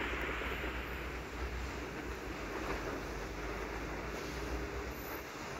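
A car engine hums as a car drives past.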